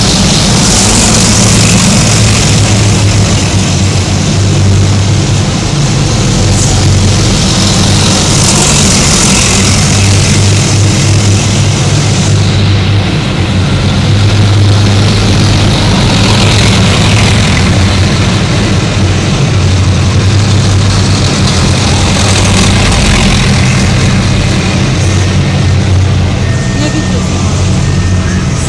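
Heavy tracked vehicles rumble past one after another with a deep, loud engine roar.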